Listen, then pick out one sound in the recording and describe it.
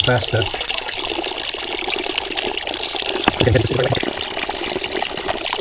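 Water splashes steadily into a bucket.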